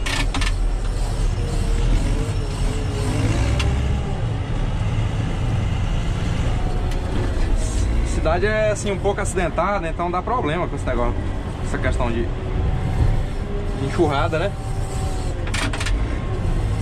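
A heavy diesel engine rumbles steadily close by.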